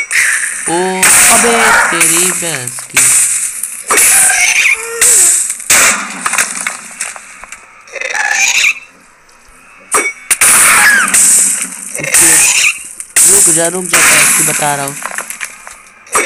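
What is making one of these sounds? Fireballs explode in loud, sudden bursts.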